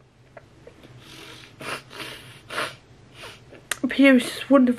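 A young woman breathes heavily and sobs close to a microphone.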